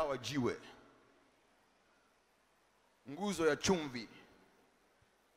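A man speaks with energy into a microphone, heard through loudspeakers in a large echoing hall.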